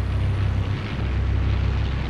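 Aircraft engines drone low and steady.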